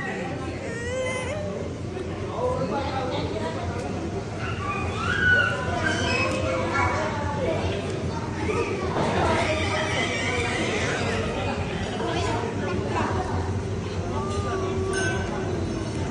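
Several adult men and women talk and chatter nearby.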